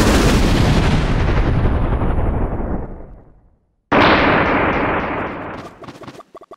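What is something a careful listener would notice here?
Cartoonish crashes and sparkling chimes burst out as characters strike a big tree.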